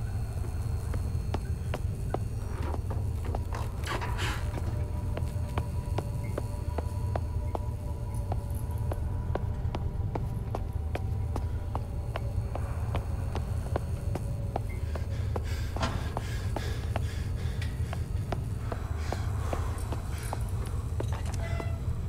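Footsteps tread slowly and evenly on a hard stone floor.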